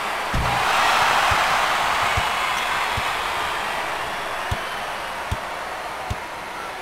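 A crowd roars and cheers in a large arena.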